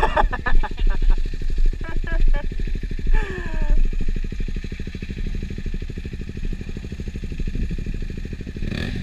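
A motorcycle engine idles close by with a steady, rapid putter.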